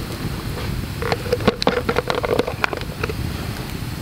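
A plastic lid clicks and rattles as hands handle it.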